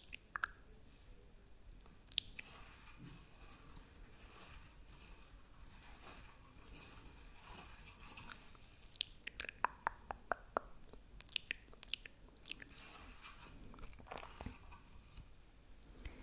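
A stick taps and scrapes against a cardboard tube close to a microphone.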